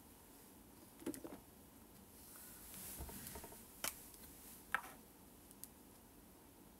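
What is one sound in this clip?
A young woman speaks quietly and calmly, close to a microphone.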